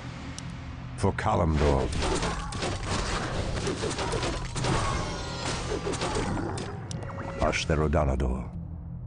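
Swords clash and spells burst in a fight.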